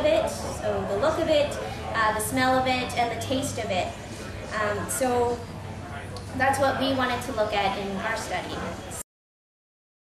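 A young woman sings close into a microphone.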